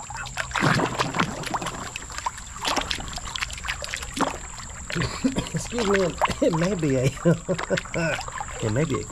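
A hand splashes and swishes through shallow water.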